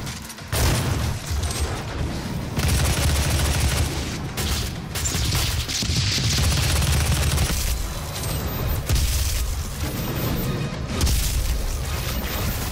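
Heavy gunfire blasts rapidly and repeatedly.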